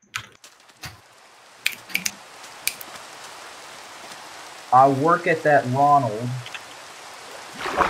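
Rain falls steadily in a soft hiss.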